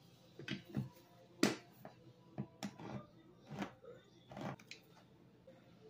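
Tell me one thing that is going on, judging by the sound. A can opener clicks and cranks around a tin can.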